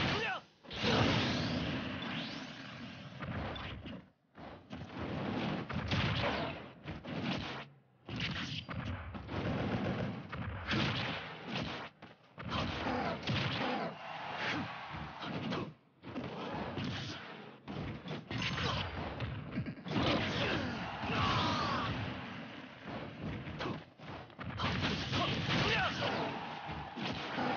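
Cartoonish fighting-game hits, whooshes and blasts crash in quick bursts.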